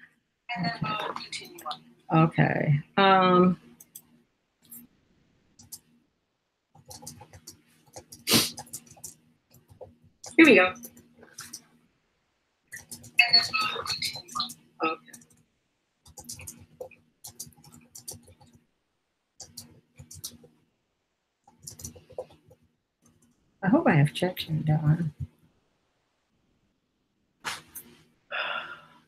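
A middle-aged woman talks calmly over an online call, with pauses.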